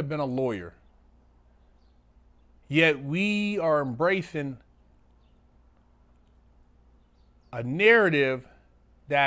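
A middle-aged man speaks in short bursts with pauses, close to a microphone.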